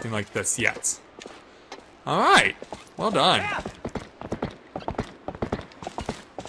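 Horse hooves clop quickly on the ground.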